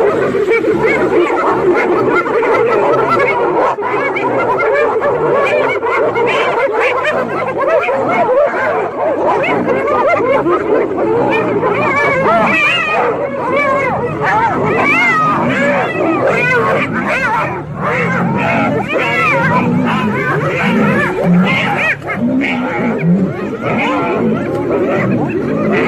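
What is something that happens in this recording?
A pack of hyenas giggles, whoops and cackles loudly.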